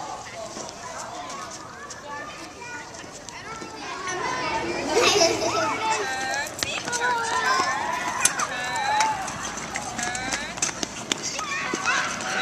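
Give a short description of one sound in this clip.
Many young children shout and chatter outdoors.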